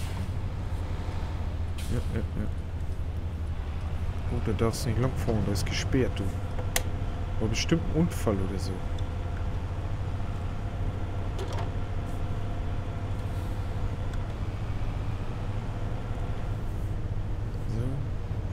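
A truck engine rumbles steadily and low.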